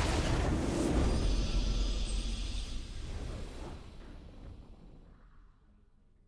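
A triumphant victory fanfare swells and then fades away.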